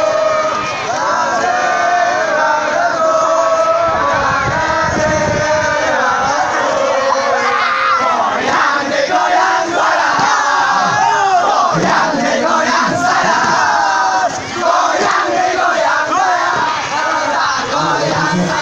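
A group of boys sings and chants loudly together close by, outdoors.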